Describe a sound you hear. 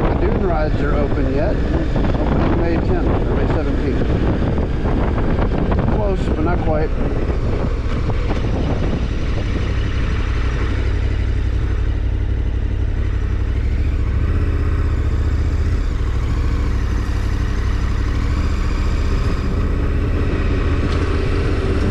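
A motorcycle engine hums steadily, easing down as the bike slows.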